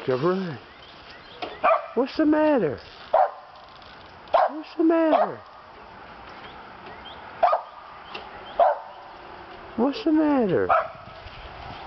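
A dog barks and yelps repeatedly outdoors.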